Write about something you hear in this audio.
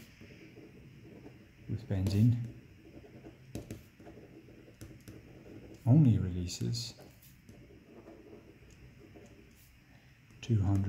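A pen scratches across paper as words are written.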